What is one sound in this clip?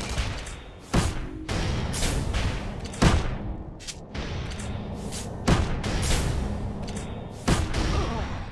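Explosions boom sharply several times.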